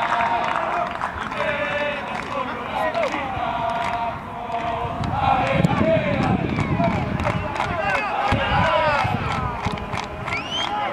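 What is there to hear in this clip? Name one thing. A crowd claps hands in rhythm.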